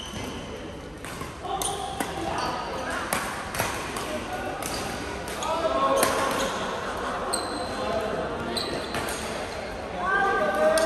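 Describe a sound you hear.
Men call out and chatter across the hall.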